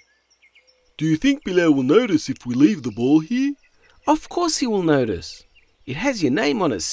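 A man speaks with animation in a cartoon voice.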